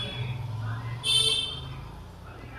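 An electronic controller beeps briefly as a button is pressed.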